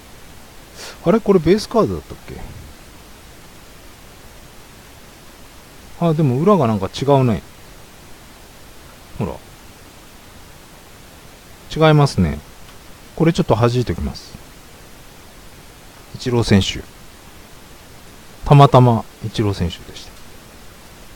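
A young man talks with animation in short bursts, close to a microphone.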